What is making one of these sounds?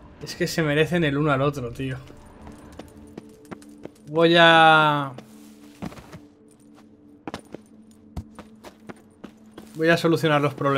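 Footsteps scuff slowly over rocky ground.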